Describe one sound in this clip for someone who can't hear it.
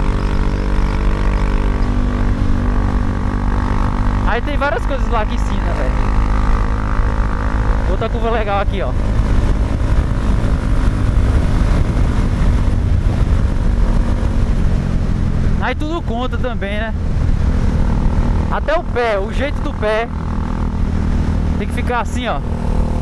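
A single-cylinder motorcycle engine hums at cruising speed.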